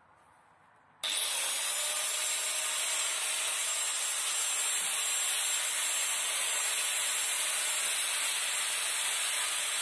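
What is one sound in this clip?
An angle grinder whines steadily as it cuts a plastic sheet.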